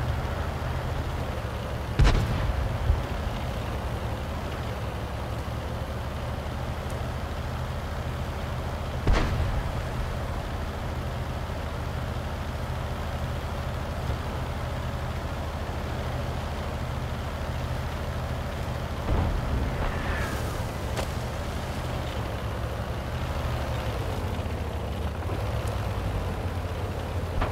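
A tank engine rumbles steadily as the tank rolls along.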